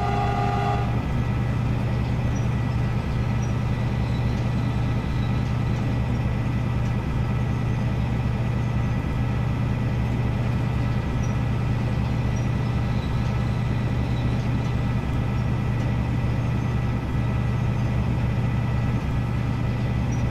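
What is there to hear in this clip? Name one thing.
Train wheels click over rail joints at an even rhythm.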